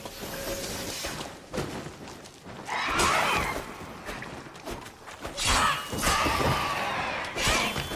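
A sword swishes and strikes with sharp metallic hits.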